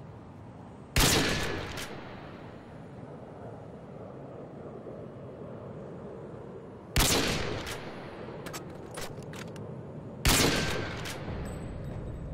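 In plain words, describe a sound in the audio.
A sniper rifle fires single loud shots that echo and fade.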